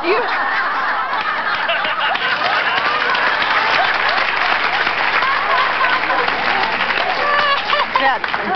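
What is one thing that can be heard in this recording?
Several women laugh loudly together.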